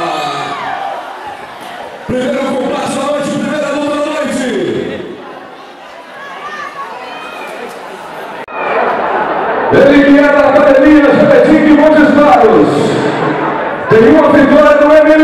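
A man announces loudly through a microphone and loudspeakers, drawing out long words.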